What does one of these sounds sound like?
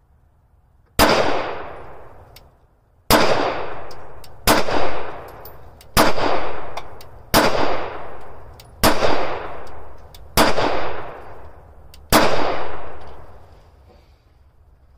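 Pistol shots ring out one after another outdoors, each echoing away.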